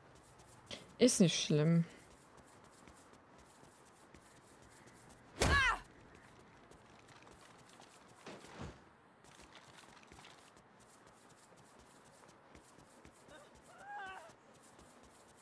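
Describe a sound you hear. A young woman speaks briefly and with animation into a close microphone.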